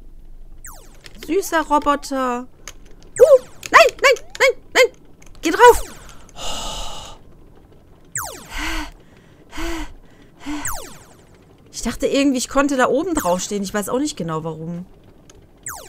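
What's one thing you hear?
Electronic laser blasts zap in quick bursts.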